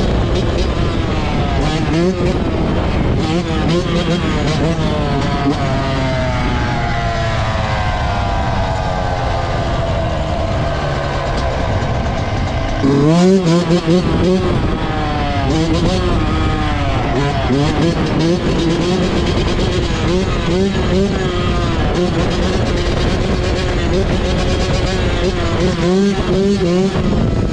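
A dirt bike engine revs loudly and repeatedly, close up.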